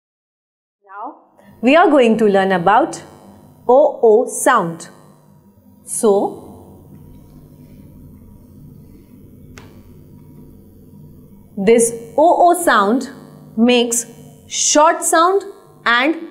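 A young woman speaks clearly close to a microphone, as if teaching.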